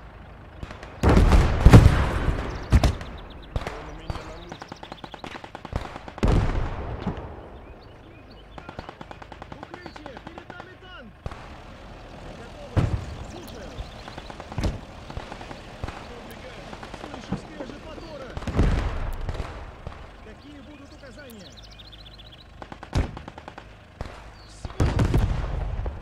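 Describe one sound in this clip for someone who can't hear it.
Artillery shells explode with loud, deep booms.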